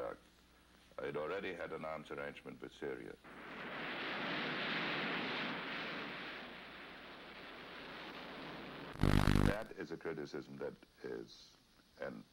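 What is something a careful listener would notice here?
A middle-aged man speaks calmly through a television speaker.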